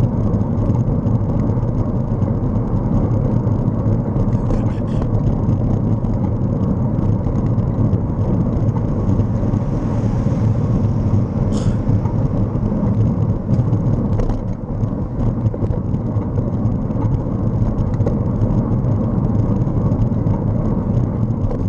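Tyres roll on asphalt with a low rumble.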